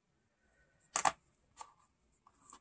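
Small metal pans click softly into place.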